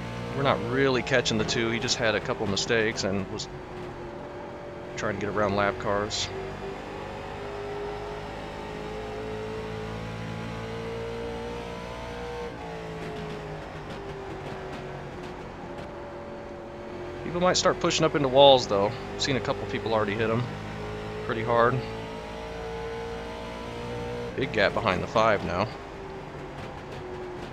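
A race car engine drones steadily at high speed.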